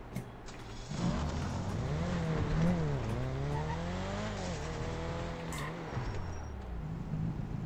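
A car engine revs up and accelerates.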